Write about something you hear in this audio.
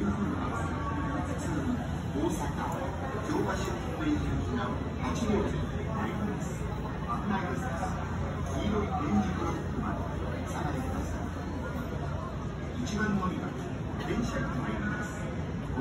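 A crowd of people chatter nearby in a busy, echoing space.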